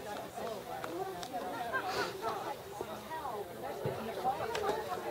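A crowd of older men and women chat and laugh outdoors nearby.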